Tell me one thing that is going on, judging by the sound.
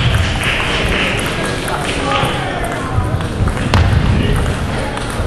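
A table tennis ball clicks back and forth on bats and the table.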